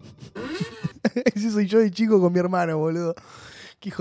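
A young man laughs into a microphone.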